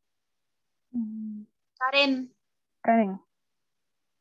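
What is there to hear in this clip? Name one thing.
A woman answers briefly over an online call.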